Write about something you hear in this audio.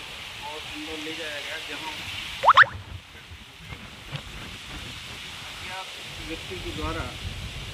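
A man speaks calmly, close by, outdoors.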